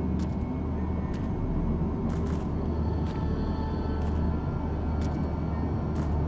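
A deep, steady rumble drones throughout.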